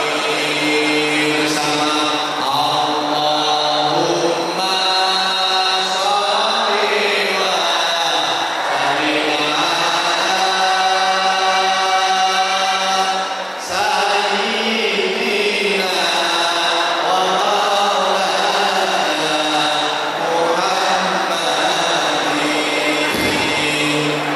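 A man sings into a handheld microphone over loudspeakers.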